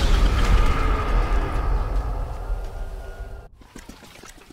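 A low dramatic tone booms and fades away.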